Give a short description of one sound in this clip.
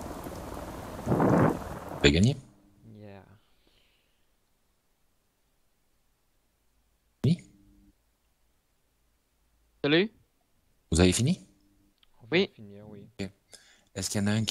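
A man talks casually in short bursts, close to a microphone.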